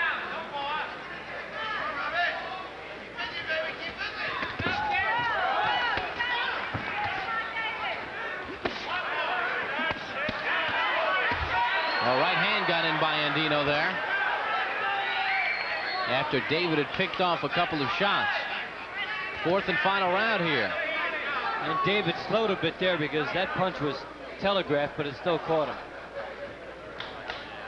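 A crowd cheers and shouts in a large arena.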